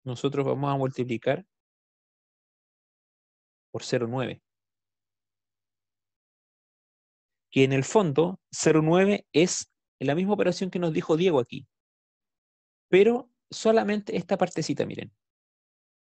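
A man speaks calmly, heard through an online call.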